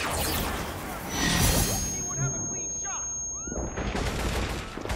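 A bright glowing burst whooshes and rings out.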